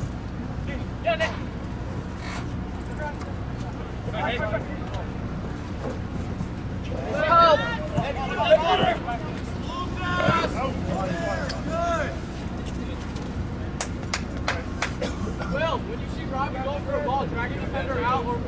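Players shout to each other across an open field.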